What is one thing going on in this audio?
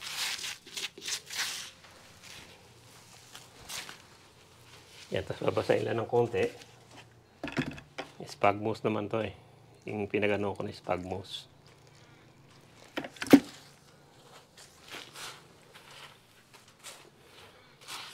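Soil crumbles and rustles under gloved hands mixing it.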